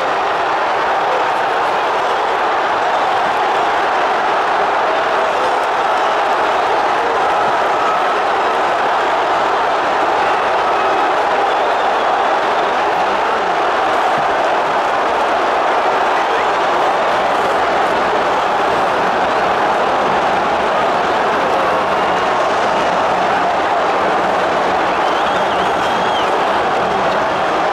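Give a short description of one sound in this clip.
Fans nearby shout and sing with excitement.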